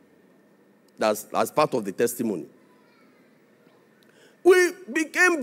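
A man speaks with animation into a microphone, heard through loudspeakers.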